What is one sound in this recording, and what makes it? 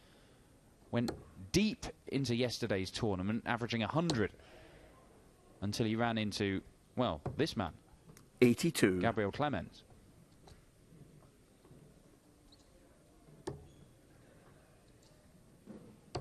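Darts thud into a dartboard.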